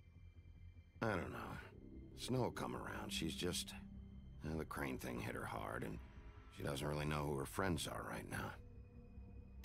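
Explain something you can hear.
A man answers in a low, calm voice.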